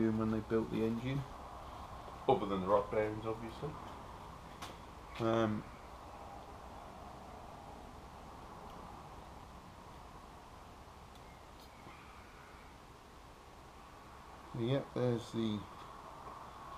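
A man talks calmly close by, in short bursts.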